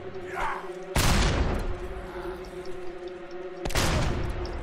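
Heavy blasts crash during a fight.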